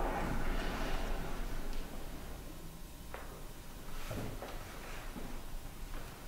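Knees and hands shuffle and knock softly on a wooden floor.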